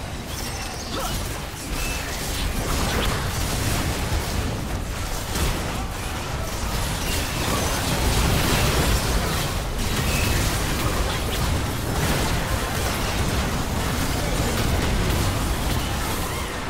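Video game combat effects whoosh, clash and burst in rapid succession.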